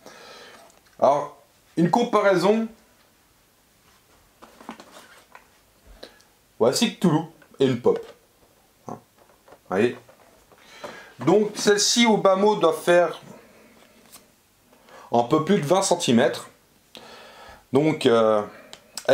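A middle-aged man talks with animation close to the microphone, in bursts with pauses.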